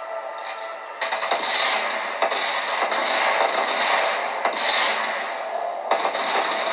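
Explosions and gunfire boom from a video game.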